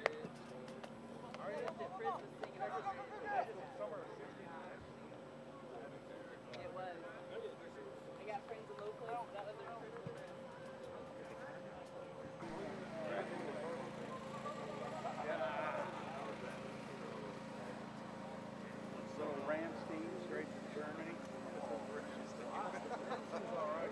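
Several young men chatter in the background.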